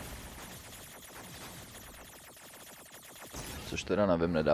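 Rapid electronic shots fire in a video game.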